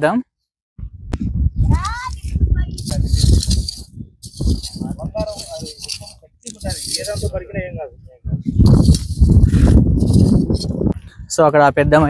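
A metal hand rake scrapes and scratches through dry, stony soil.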